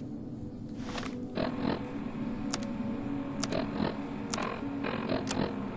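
Electronic menu clicks and beeps sound a few times.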